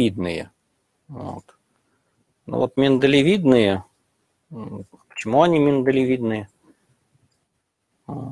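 A man lectures calmly into a microphone, heard as if over an online call.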